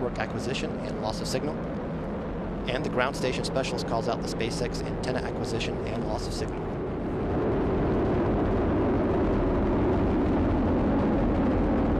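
A rocket engine roars with a deep, steady rumble that grows louder.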